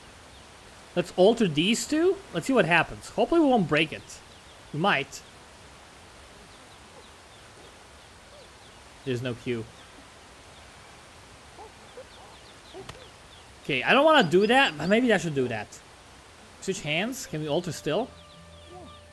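A chimpanzee hoots and grunts close by.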